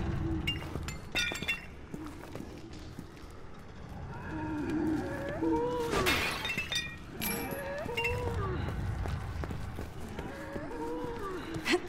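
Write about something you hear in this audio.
Footsteps thud on stone.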